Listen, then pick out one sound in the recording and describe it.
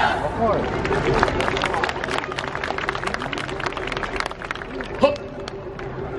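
Wooden clappers clack in rhythm.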